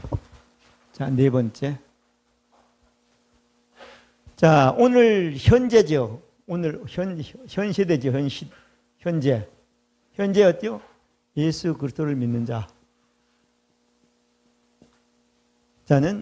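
An elderly man speaks through a microphone in bursts, with pauses, in a room with some echo.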